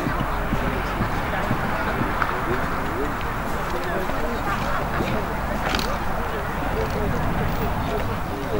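A horse's hooves thud on grass as it canters.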